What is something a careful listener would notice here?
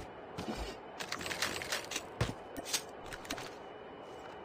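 Gear rattles briefly as items are picked up.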